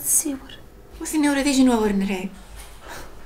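A woman speaks firmly, close by.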